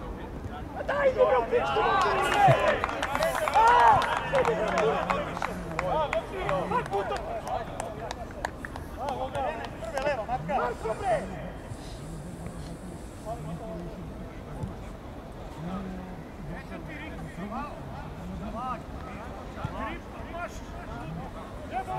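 Young men shout and call out to each other across an open football pitch.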